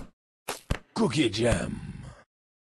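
A cheerful jingle plays as a bonus triggers.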